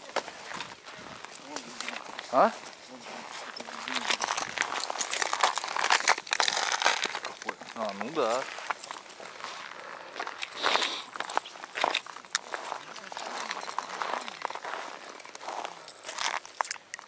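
Men talk to each other outdoors.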